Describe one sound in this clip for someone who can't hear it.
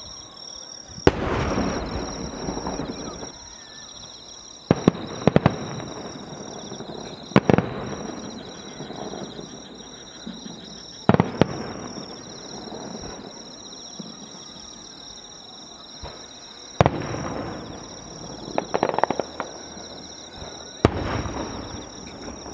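Fireworks explode with loud booms that echo across the night.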